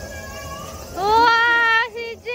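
A young child shouts out loudly.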